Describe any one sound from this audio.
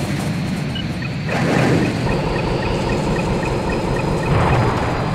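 A warning tone beeps rapidly and evenly.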